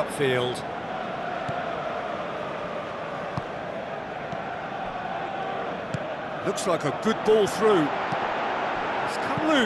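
A large stadium crowd murmurs and roars in the distance.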